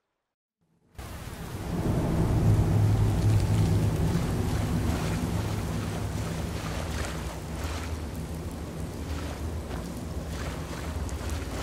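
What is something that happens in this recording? Strong wind roars steadily.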